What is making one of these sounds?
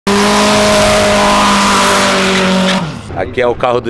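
Tyres screech in a burnout.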